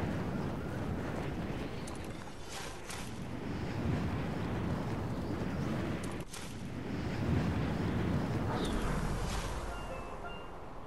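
Wind rushes loudly past a falling skydiver, then fades.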